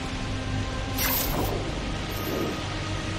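Something whooshes through the air as it swings.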